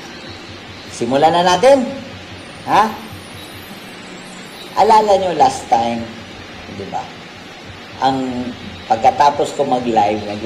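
A middle-aged man speaks calmly through an online call, with pauses.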